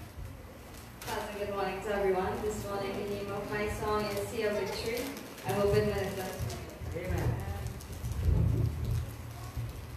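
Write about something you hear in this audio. A young woman sings slowly over a loudspeaker system.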